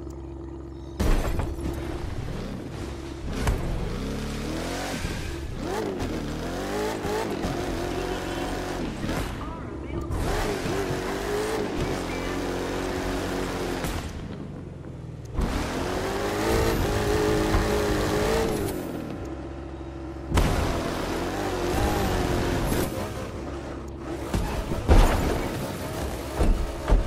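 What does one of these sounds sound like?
A heavy truck lands with loud thuds.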